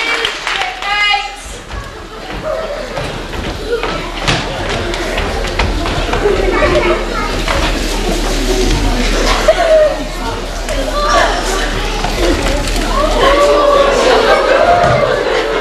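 Men on a stage speak and call out loudly in an echoing hall.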